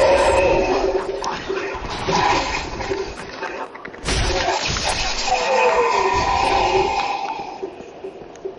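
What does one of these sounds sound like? Metal weapons clash and slash in a fight.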